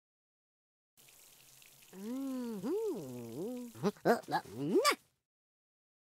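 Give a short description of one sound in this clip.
Water sprays from a shower hose.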